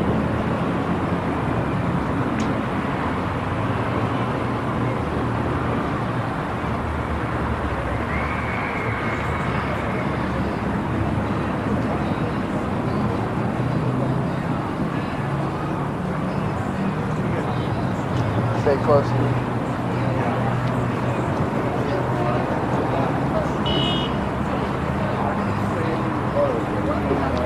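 A busy street hums with distant traffic.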